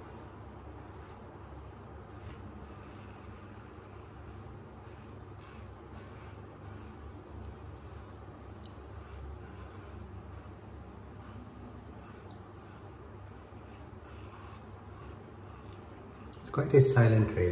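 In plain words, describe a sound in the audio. A razor scrapes softly over stubble.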